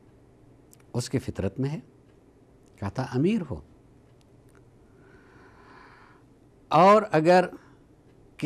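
An older man speaks calmly and slowly into a close microphone, with long pauses.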